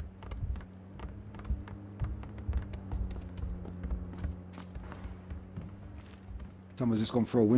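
Footsteps thud on a wooden floor and stairs.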